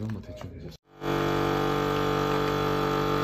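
A vacuum sealer's pump hums steadily.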